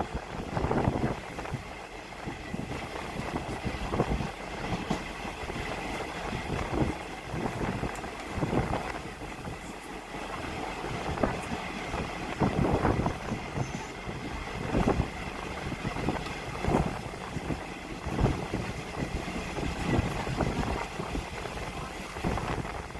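Wind rushes past an open window.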